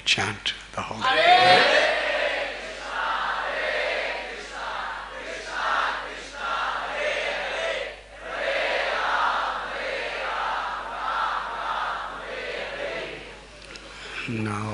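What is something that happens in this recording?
A crowd cheers and chants loudly.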